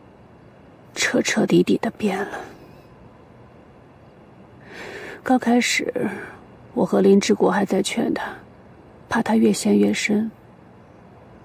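A middle-aged woman speaks quietly and earnestly nearby.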